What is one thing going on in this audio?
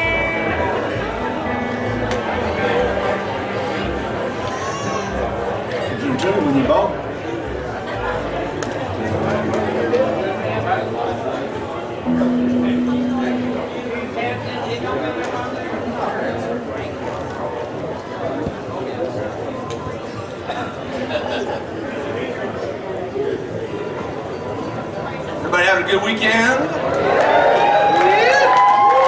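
A woman sings into a microphone through loudspeakers.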